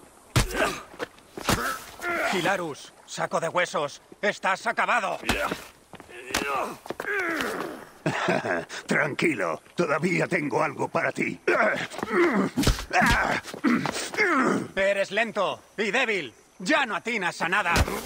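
A man taunts loudly and with animation.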